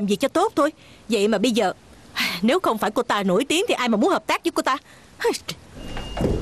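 A middle-aged woman speaks loudly and with animation.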